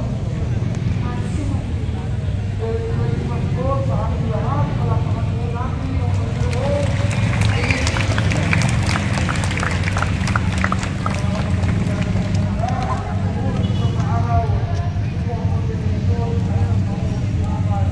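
A large crowd chatters outdoors with many voices at once.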